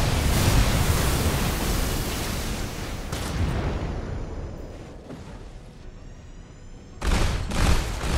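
A robot fires an energy gun in rapid bursts.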